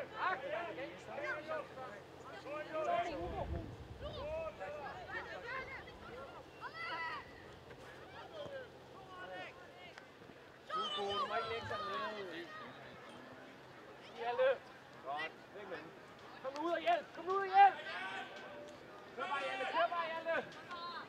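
Young players shout to each other across an open pitch outdoors.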